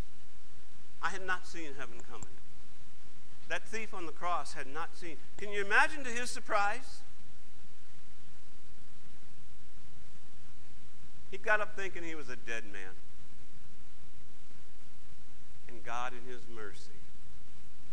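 A middle-aged man speaks calmly through a microphone in an echoing hall, with long pauses.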